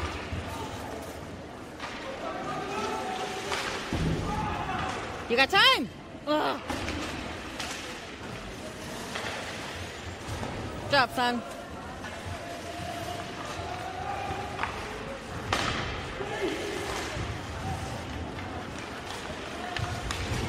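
Skates scrape and carve across the ice in a large echoing arena.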